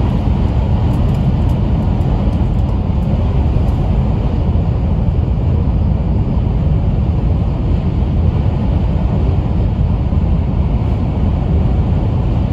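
A train rumbles steadily along at speed, heard from inside a carriage.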